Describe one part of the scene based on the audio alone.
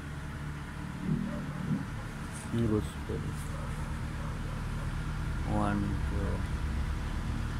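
An elderly man speaks briefly in a low voice close by.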